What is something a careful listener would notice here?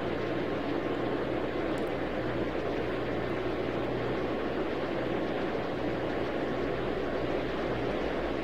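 Jet engines roar steadily as an airliner rolls along a runway.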